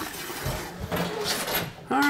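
A metal sink clanks as it is lifted out.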